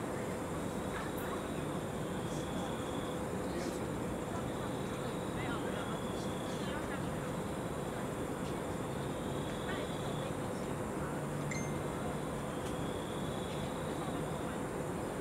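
A young man speaks softly, close by.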